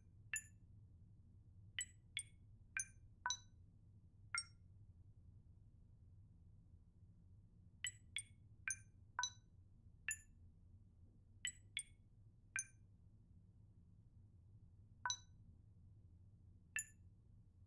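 Short, bright electronic beeps sound as keypad buttons are pressed, in uneven bursts.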